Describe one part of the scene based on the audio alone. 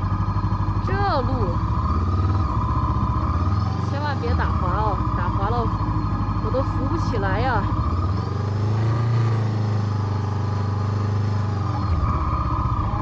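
A motorcycle engine rumbles steadily over rough dirt.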